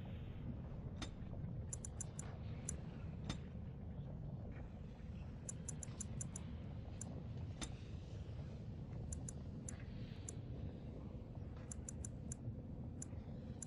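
Short soft clicks tick over and over in quick bursts.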